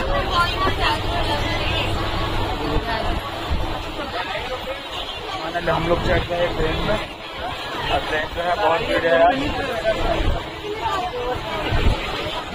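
Several men and women talk all around.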